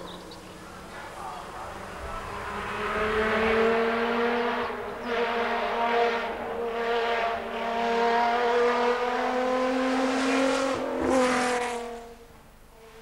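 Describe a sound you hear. A racing car engine roars loudly as the car speeds past.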